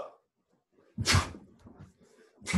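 Feet thump on a wooden floor.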